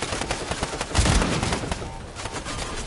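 A second explosion booms nearby.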